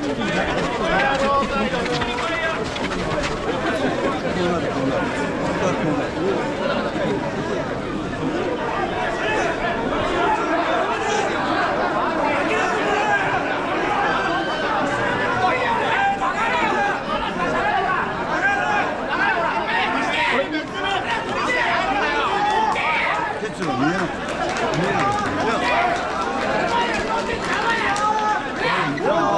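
A large crowd of men chants and shouts rhythmically outdoors.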